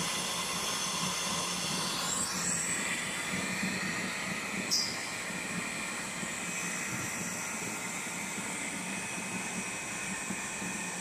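A machine hums and whirs steadily with rollers turning.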